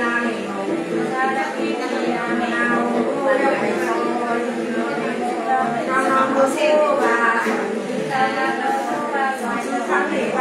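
An elderly woman chants in a steady, wavering voice close by.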